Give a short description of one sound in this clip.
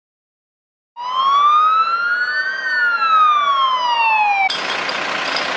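A fire engine siren wails as the engine drives closer.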